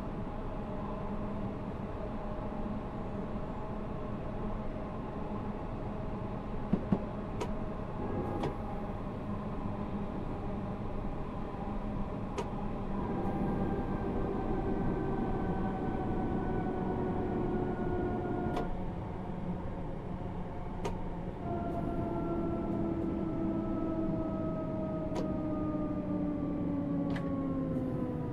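A train's motors hum steadily as it slows down.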